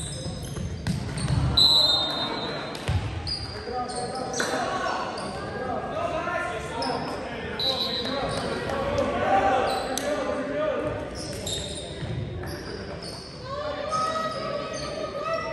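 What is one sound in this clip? Young players shout and call to each other in a large echoing gym.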